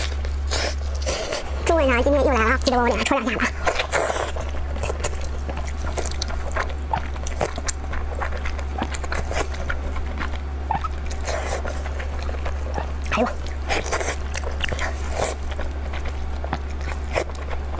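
A young woman chews and slurps food noisily close to a microphone.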